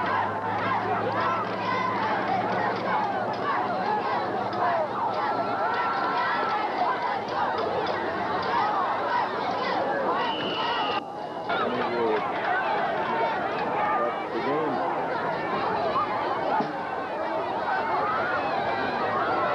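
A large outdoor crowd chatters and cheers loudly.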